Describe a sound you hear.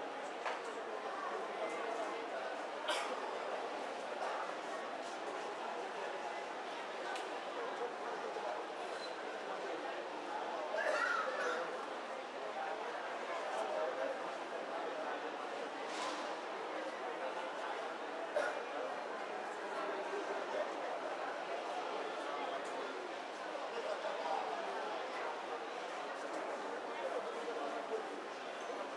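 A crowd of people murmurs quietly in the background.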